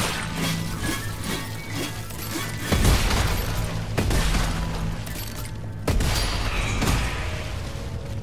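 Weapons clash and slash in a fight.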